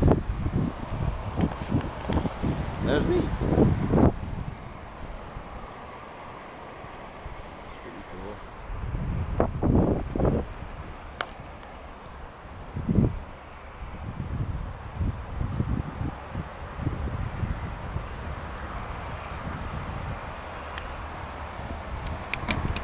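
Wind buffets a microphone in gusts outdoors.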